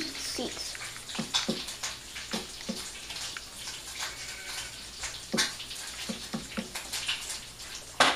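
Wooden blocks are placed with soft knocks.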